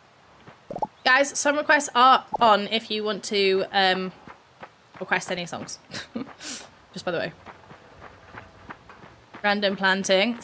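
A young woman speaks casually and close to a microphone.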